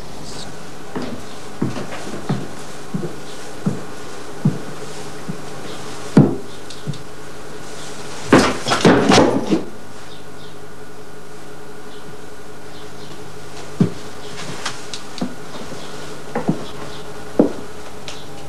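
Footsteps thud slowly on wooden stairs.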